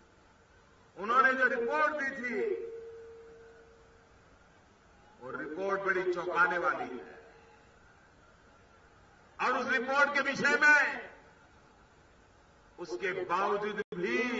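An older man speaks forcefully into a microphone over loudspeakers, in bursts with pauses, echoing outdoors.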